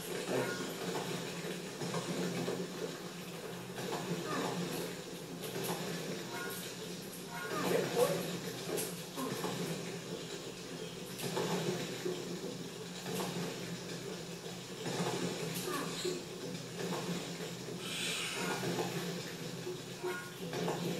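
Game sound effects chime and whoosh through a television speaker.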